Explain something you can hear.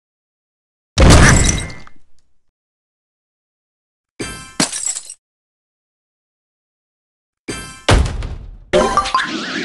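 Game blocks burst with bright popping effects.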